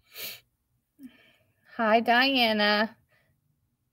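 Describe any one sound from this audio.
A woman speaks briefly and brightly through an online call microphone.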